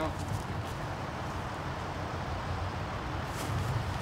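Footsteps scuff on dry pine needles.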